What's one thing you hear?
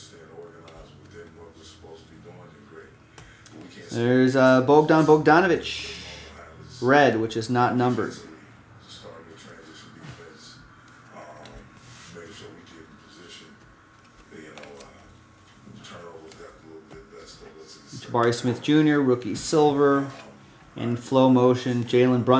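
Trading cards shuffle and flick between fingers.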